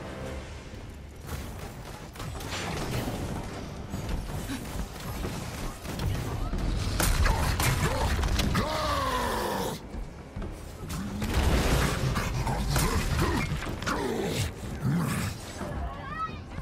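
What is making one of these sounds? Heavy blows thud and smash.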